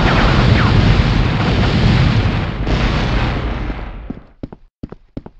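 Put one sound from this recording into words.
An explosion booms and roars with fire.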